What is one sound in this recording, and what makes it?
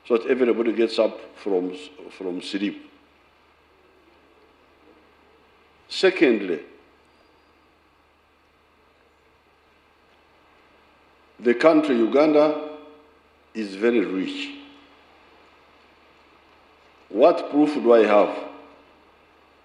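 An elderly man speaks slowly and deliberately through a microphone, with long pauses, in an echoing hall.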